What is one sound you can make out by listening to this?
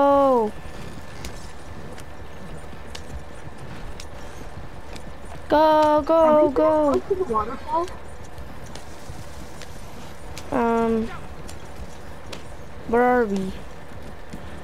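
Wooden wagon wheels rumble steadily over a dirt track.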